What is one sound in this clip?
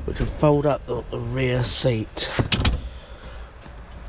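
A car seat back swings up and latches with a clunk.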